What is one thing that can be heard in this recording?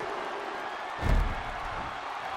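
A body slams onto a wrestling ring mat with a heavy thud.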